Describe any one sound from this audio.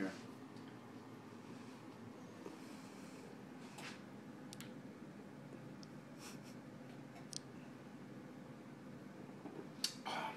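Men gulp drinks from glasses.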